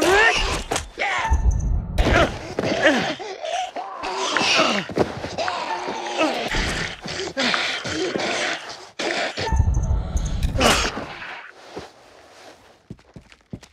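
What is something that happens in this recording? Two people scuffle and thud heavily to the ground.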